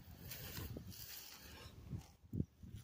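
Grass rustles and swishes close by.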